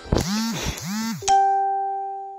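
Warbling electronic game tones sweep up and down.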